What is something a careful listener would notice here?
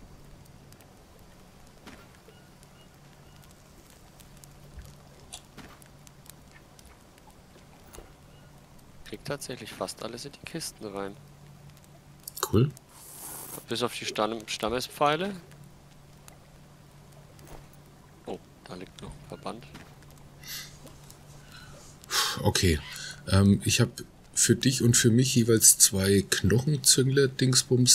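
A campfire crackles softly.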